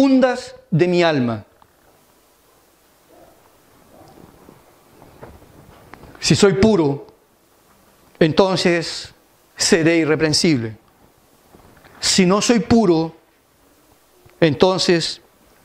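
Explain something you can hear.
A middle-aged man speaks with emphasis through a microphone, in bursts with pauses.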